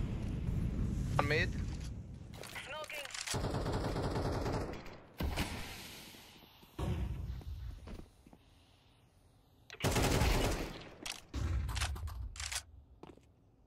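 A smoke grenade hisses loudly in bursts.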